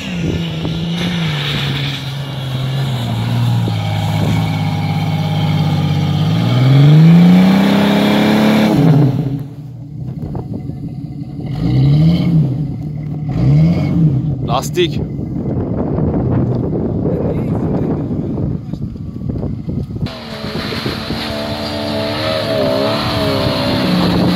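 Tyres churn through slushy snow and mud.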